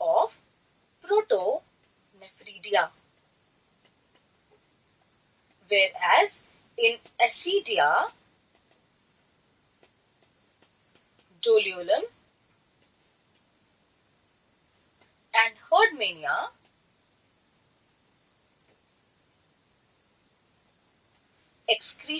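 A young woman speaks calmly into a microphone in short bursts with pauses.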